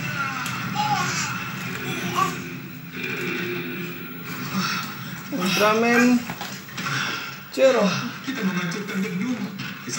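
A television plays music and voices nearby.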